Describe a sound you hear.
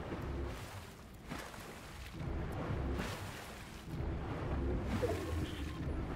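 Water splashes with each step of someone wading through it.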